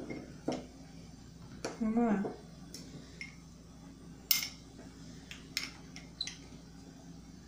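Spoons clink against glass cups.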